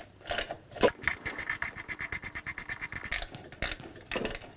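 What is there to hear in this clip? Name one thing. A ratchet wrench clicks in quick bursts.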